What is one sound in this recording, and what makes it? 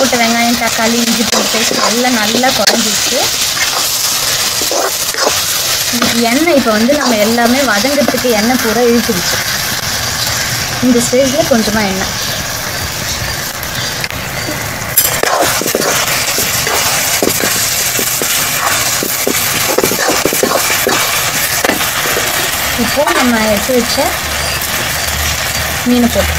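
A metal spatula scrapes and clatters against an iron pan.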